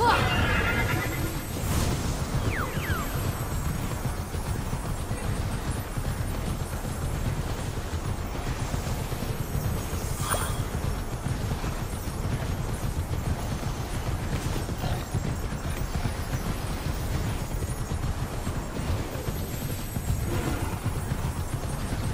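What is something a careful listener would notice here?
A horse gallops steadily, its hooves thudding on soft ground.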